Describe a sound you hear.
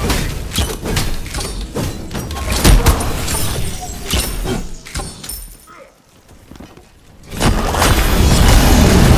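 Spell blasts and hits crackle and boom in quick bursts.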